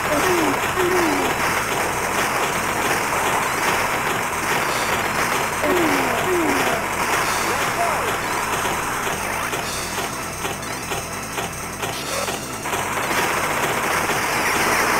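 Rapid gunfire from a video game rattles without a break.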